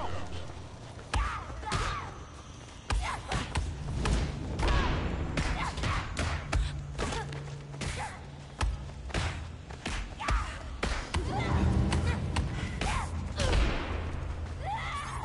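Punches land with sharp, dull thuds.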